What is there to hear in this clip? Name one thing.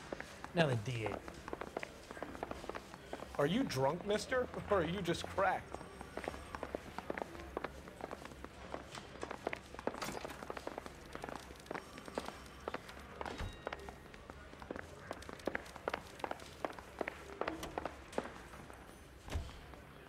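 Footsteps thud quickly across a wooden floor indoors.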